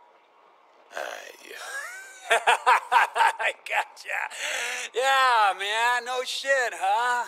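A man laughs loudly and talks with animation.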